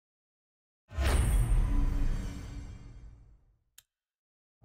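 A deep booming whoosh sounds as an upgrade is unlocked, then fades away.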